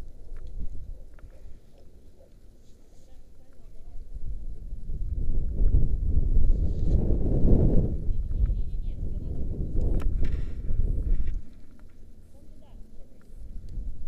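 Wind rushes and buffets past a microphone, rising to a loud roar and then easing.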